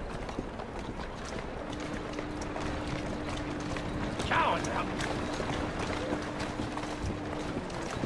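Horse hooves clop on cobblestones nearby.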